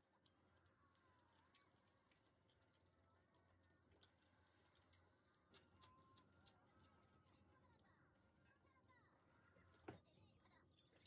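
Chopsticks click against a ceramic plate.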